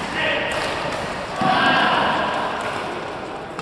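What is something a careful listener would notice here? Players and spectators shout and cheer in a large echoing hall.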